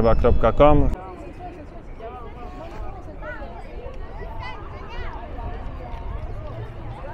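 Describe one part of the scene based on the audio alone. A crowd of people chatters in an open square.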